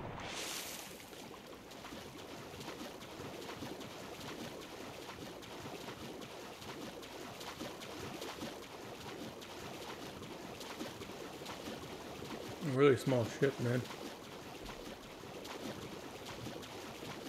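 Water swishes steadily as a swimmer strokes through it.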